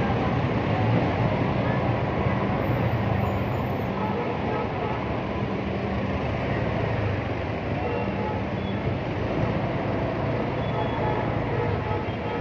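A motor scooter engine hums and rumbles up close.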